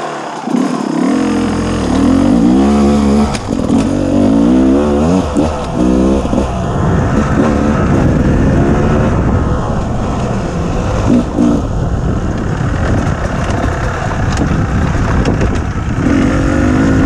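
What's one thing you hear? Tyres crunch over rocks and dry leaves.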